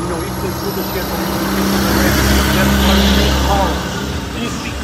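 A large truck rumbles past close by.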